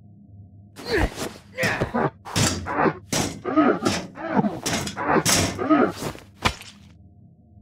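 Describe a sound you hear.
Heavy punches thud against metal in quick blows.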